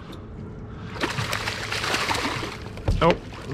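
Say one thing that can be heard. A fish splashes hard at the water's surface.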